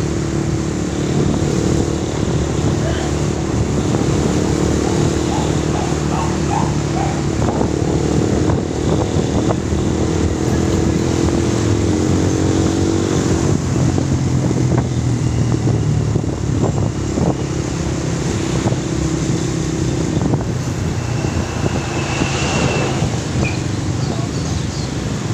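A motorcycle engine hums steadily close by, its pitch shifting as the ride speeds up and slows down.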